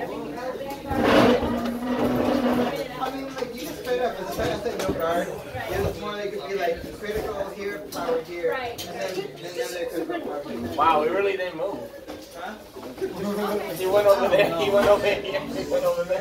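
Cards tap softly onto a tabletop.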